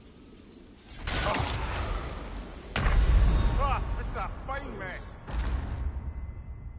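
A loud magical blast roars and rumbles.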